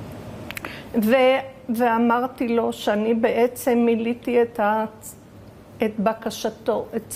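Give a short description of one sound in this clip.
An elderly woman speaks calmly and close to a microphone.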